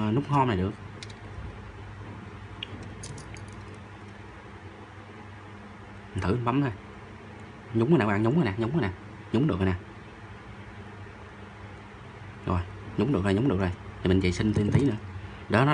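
Small metal parts click and scrape as a phone is taken apart by hand.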